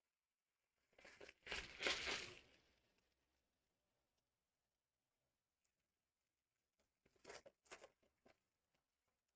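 Trading cards rustle and slide as they are handled.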